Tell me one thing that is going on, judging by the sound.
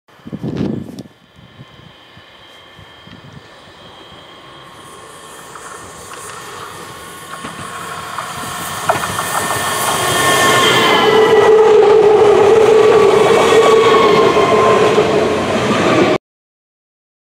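An electric train approaches, rumbling louder, and passes close by with a rushing whine.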